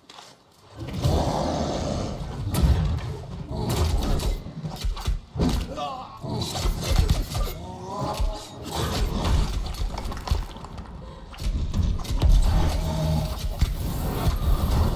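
Heavy blows thud and crash against a large creature.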